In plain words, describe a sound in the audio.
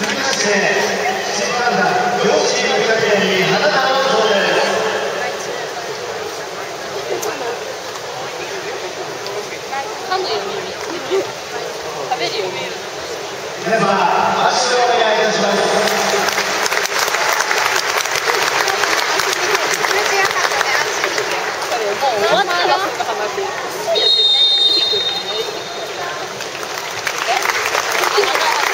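A crowd of spectators chatters and calls out across an open stadium.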